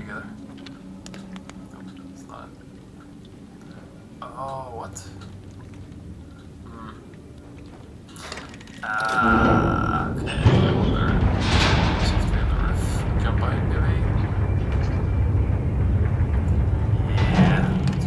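A man talks close to a microphone, casually.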